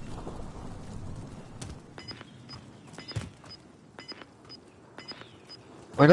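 Footsteps run over dirt and rocks.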